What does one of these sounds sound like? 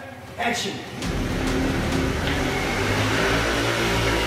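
A motor scooter engine revs and approaches, echoing in an enclosed space.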